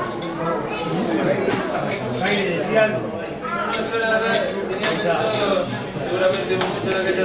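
Several men sing together in a chant, close by.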